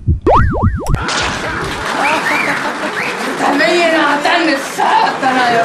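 A young woman shrieks with excitement close by.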